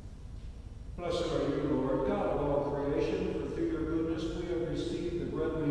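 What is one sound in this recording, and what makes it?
A man chants in a steady voice through a microphone in a large echoing hall.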